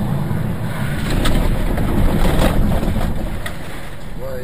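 A car crashes off the road with a loud crunch.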